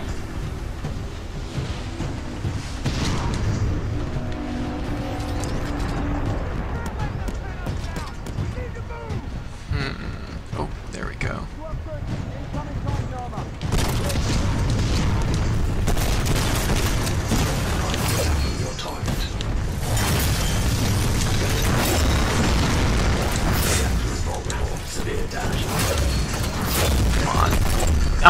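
Heavy gunfire booms and rattles in rapid bursts.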